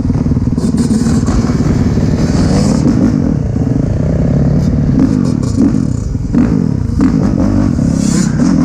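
A dirt bike engine revs loudly close by.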